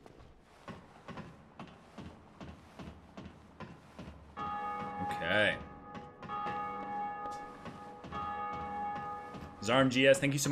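Armoured footsteps clank on a ladder rung by rung.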